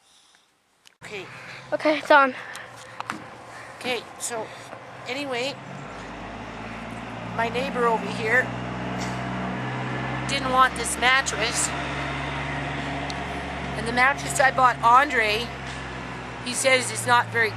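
A middle-aged woman talks calmly and close by, outdoors.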